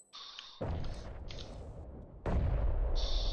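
A rifle fires loud shots that boom and echo.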